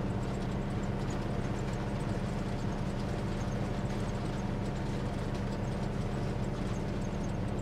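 A vehicle's engine rumbles steadily with a deep hum.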